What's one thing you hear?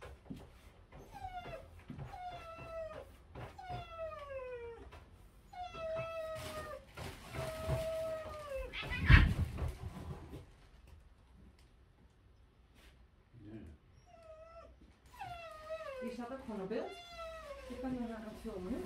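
A dog whines in short, falling cries.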